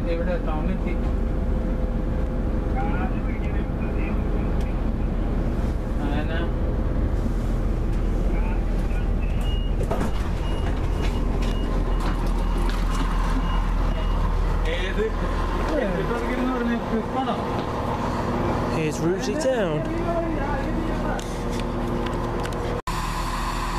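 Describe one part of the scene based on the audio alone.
A train rumbles and hums steadily along the tracks.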